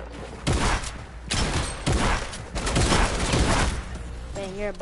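Gunshots fire in loud rapid bursts.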